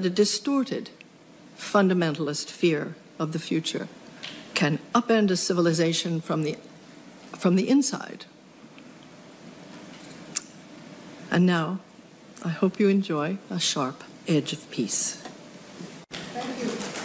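A middle-aged woman speaks calmly and earnestly into a microphone.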